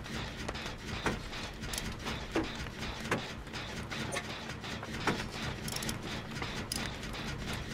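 Metal parts clank and rattle as a machine is worked on by hand.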